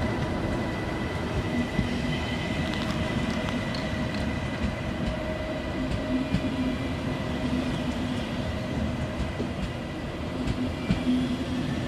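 An electric high-speed train rumbles past as it pulls out of a station.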